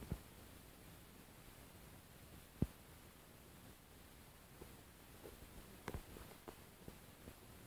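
Small metal keys click and jingle faintly through a phone speaker.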